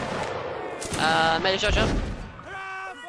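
A musket fires with a loud bang.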